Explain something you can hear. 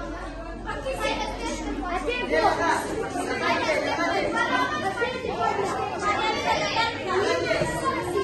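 Children chatter and call out in a room.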